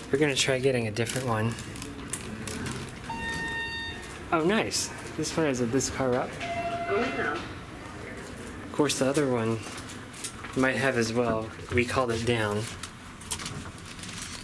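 An elevator button clicks when pressed.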